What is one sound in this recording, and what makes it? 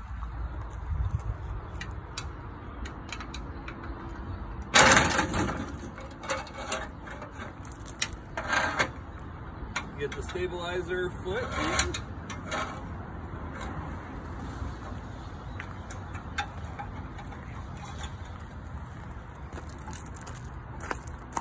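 Metal parts clank and rattle.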